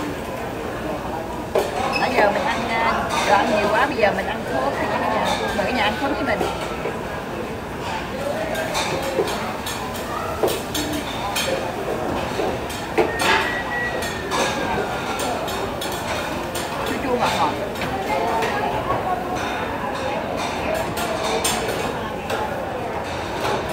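Diners chatter in a busy room.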